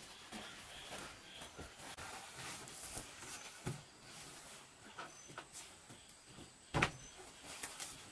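A plastic mat rustles and flaps as it is unrolled.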